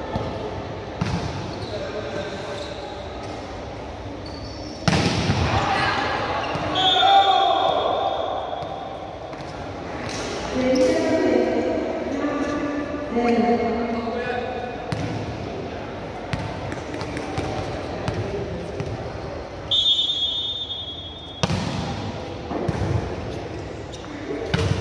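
A volleyball is struck hard, with sharp smacks echoing in a large hall.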